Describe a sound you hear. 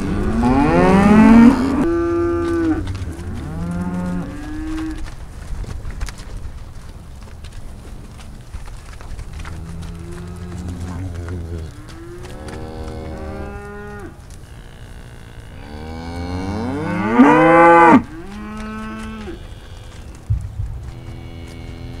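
Cattle moo and bellow loudly nearby, over and over.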